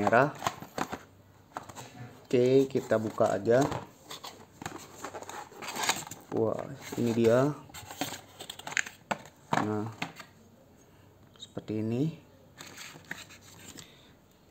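A cardboard box scrapes and rustles as it is handled.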